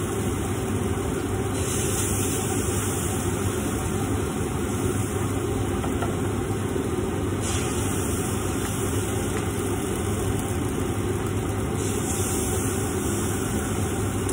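Gas burners hiss and roar steadily.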